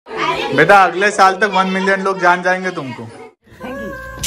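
A group of children sing together loudly.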